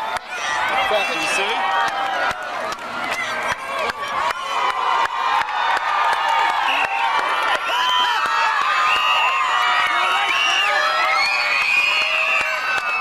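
Hands clap sharply among a cheering crowd.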